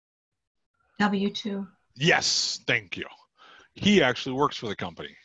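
A man speaks calmly through a headset microphone on an online call.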